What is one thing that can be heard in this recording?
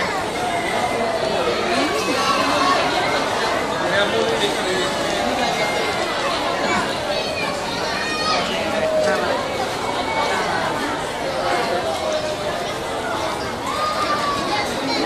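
A large crowd chatters and calls out loudly all around, echoing in a large indoor hall.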